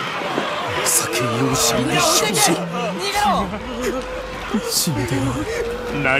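A man cries out in distress nearby.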